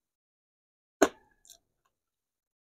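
A utensil clinks on a ceramic plate.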